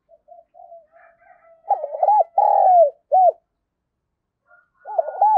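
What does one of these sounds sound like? A dove coos close by in soft, deep, repeated phrases.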